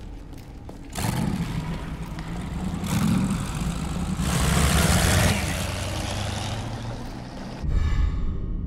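A boat engine roars and revs nearby, then fades away.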